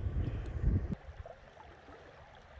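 Water in a shallow stream flows quietly.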